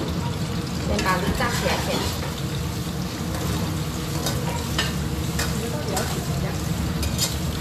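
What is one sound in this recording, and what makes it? A metal spoon clinks against a pan.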